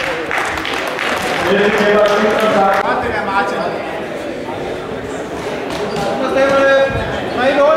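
A crowd murmurs in the background of a large hall.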